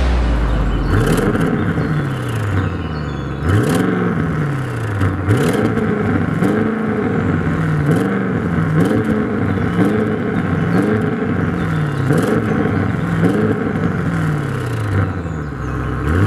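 Exhaust pops and crackles between revs.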